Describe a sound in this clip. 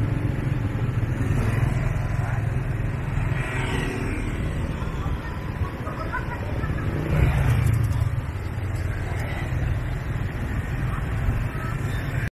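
Motorbike engines hum as they pass close by.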